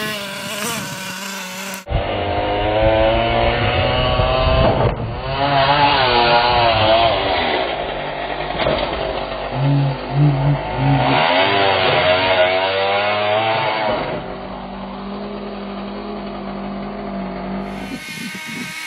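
A toy car's electric motor whines and revs up and down.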